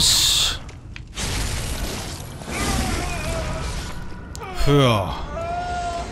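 A blade slashes and strikes flesh with wet splatters.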